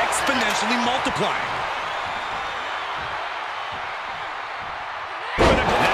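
A large crowd cheers in an arena.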